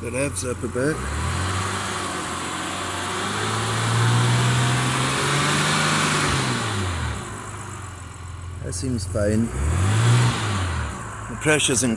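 A car engine hums, rising and falling in pitch.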